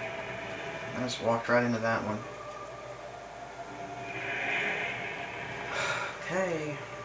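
A sword swings and strikes with sharp hits.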